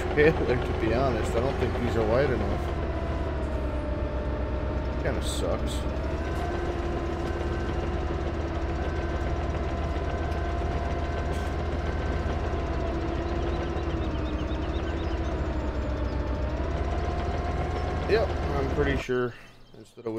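A hydraulic excavator arm whines as it moves.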